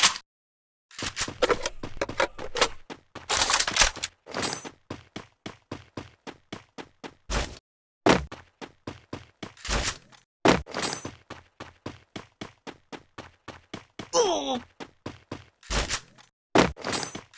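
Footsteps tap quickly and evenly on hard ground.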